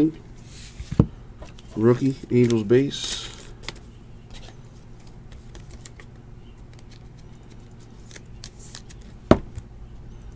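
A plastic card sleeve clicks and crinkles.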